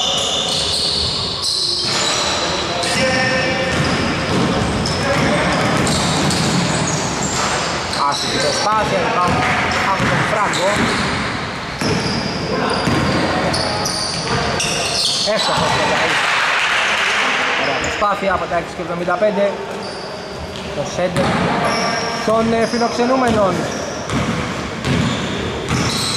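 Sneakers squeak sharply on a hardwood floor in a large echoing hall.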